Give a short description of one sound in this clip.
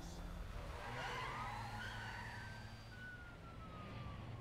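A police siren wails in the distance.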